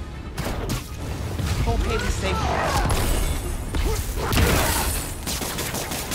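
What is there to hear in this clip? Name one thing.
Punches and energy blasts thud and crackle in a fight.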